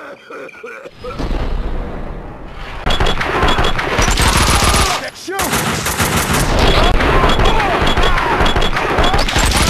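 Gunshots fire rapidly and loudly.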